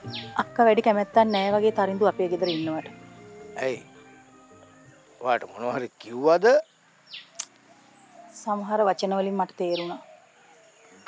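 A middle-aged woman speaks earnestly up close.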